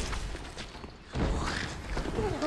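A large creature lunges out with a heavy crash.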